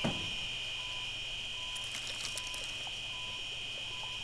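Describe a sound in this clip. A heart monitor beeps steadily.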